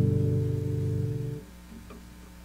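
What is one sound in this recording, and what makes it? An acoustic guitar's final chord rings out over a loudspeaker and stops abruptly.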